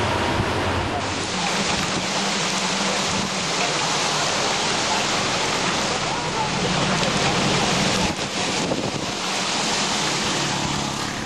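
Heavy rain pours down and splashes on a street.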